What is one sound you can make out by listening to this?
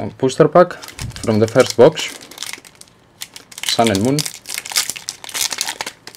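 A foil wrapper crinkles in hands.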